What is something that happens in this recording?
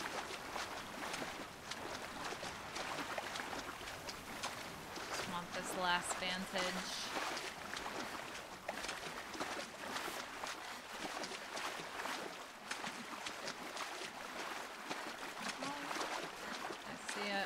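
Water splashes and ripples steadily as something swims.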